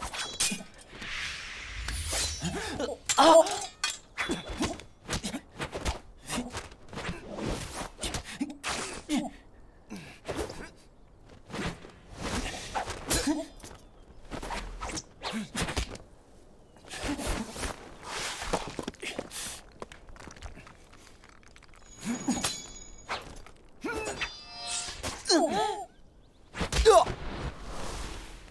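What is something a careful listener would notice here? Swords clash and swish in a fast fight.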